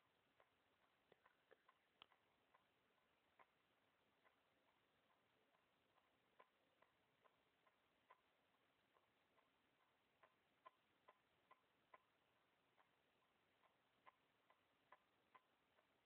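Dental floss clicks faintly against teeth.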